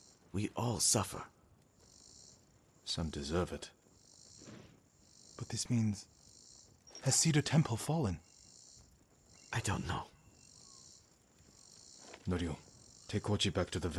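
A man speaks in a low, grave voice.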